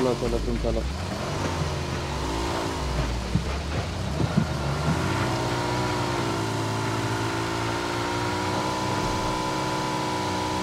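A motorbike engine hums steadily and revs up and down.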